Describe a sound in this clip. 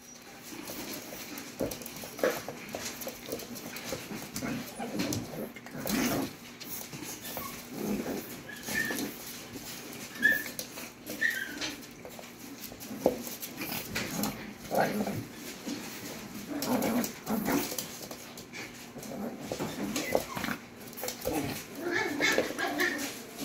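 Puppy paws patter and scrabble on a wooden floor.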